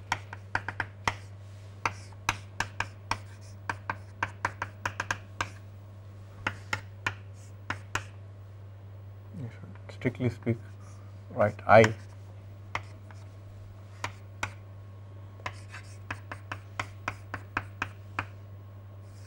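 Chalk taps and clicks on a board.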